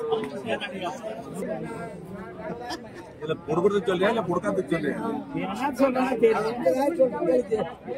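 An elderly man speaks loudly and with animation close by.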